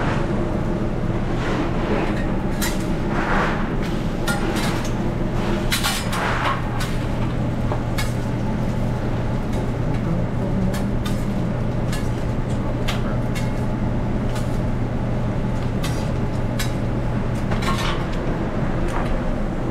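Metal spatulas scrape and clack on a hot griddle.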